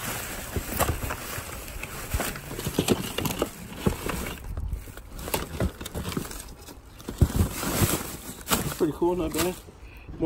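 Plastic bubble wrap crinkles and rustles as it is handled.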